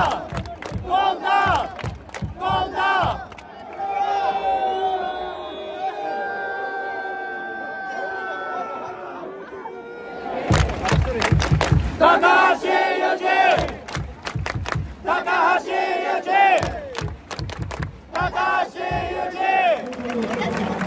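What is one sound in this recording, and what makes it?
Fans clap their hands in rhythm.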